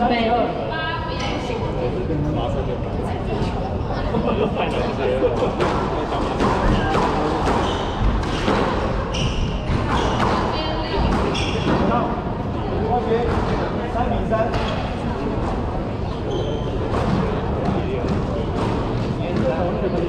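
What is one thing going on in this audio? A squash ball smacks sharply against walls and rackets in an echoing court.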